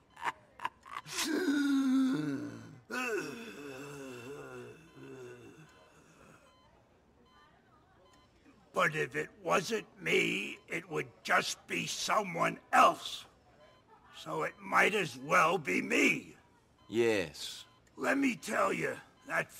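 An elderly man speaks in a rasping voice.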